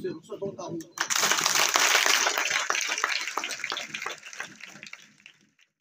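A large crowd of children claps and cheers outdoors.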